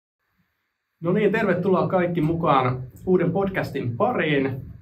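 A young man talks calmly nearby.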